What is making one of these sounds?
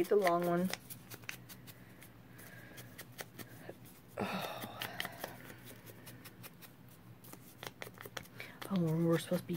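An ink applicator dabs and scrubs softly against paper.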